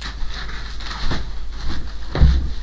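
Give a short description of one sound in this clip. Footsteps thud across a wooden floor close by.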